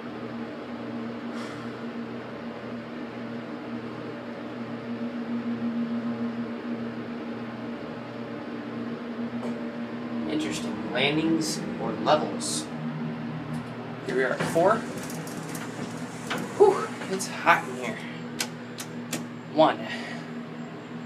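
An elevator motor hums steadily.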